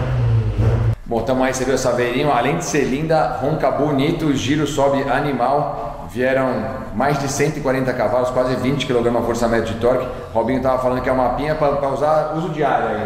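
A man speaks with animation close to the microphone.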